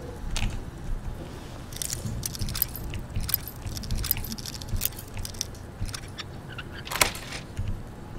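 Metal lock picks click and scrape inside a lock.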